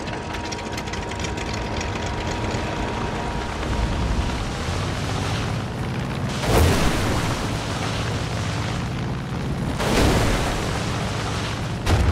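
A small propeller plane's engine drones as it taxis on water.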